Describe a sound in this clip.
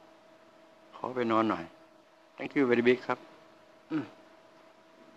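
An elderly man speaks into a microphone close by, in short calm phrases.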